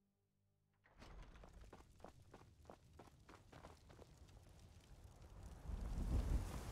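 Armoured footsteps crunch on stone at a steady walking pace.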